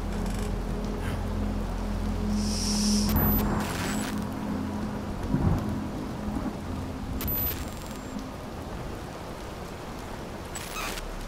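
A young woman speaks quietly into a microphone.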